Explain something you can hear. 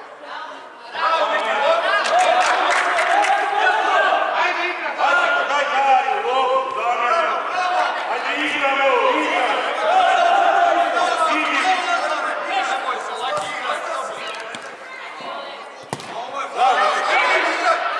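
Spectators cheer and shout from the side.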